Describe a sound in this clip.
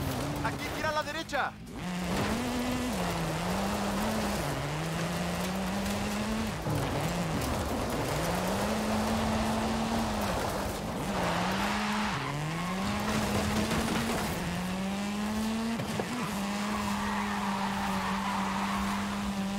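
A rally car engine revs hard, rising and falling as gears change.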